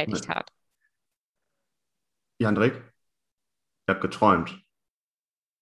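A man speaks calmly over an online call, in short bursts.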